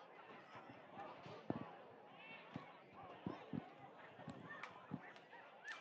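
A stadium crowd murmurs and cheers outdoors.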